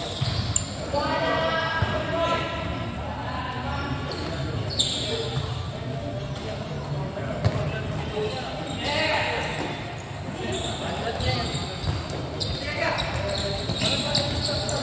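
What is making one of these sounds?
Children shout and call out to each other during play.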